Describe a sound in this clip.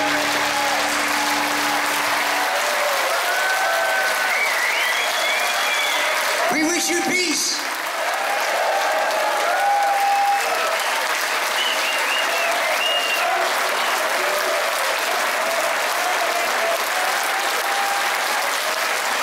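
A large audience applauds loudly.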